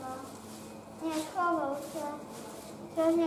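A young child talks close by.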